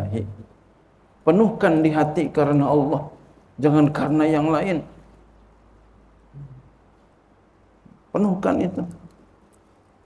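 A middle-aged man speaks calmly into a microphone in a slightly echoing room, pausing between phrases.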